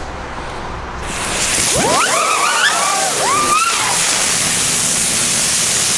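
A firework fuse hisses loudly.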